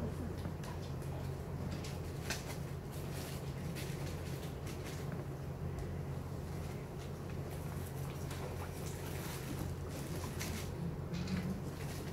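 An elderly woman speaks softly close by.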